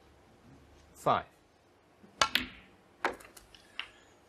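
Snooker balls click sharply together.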